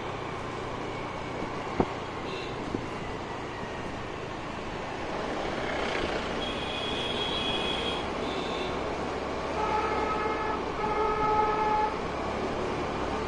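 A scooter engine hums steadily while riding along a street.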